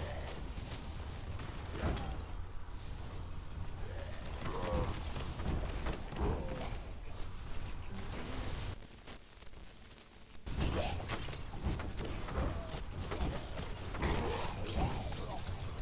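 Blades slash and blasts burst in quick succession during a fight.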